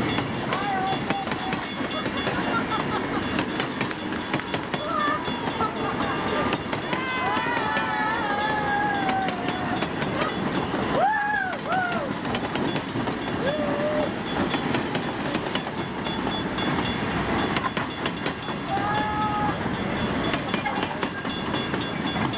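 A long train rumbles and clatters steadily past, close by.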